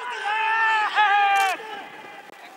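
A young man shouts an appeal outdoors.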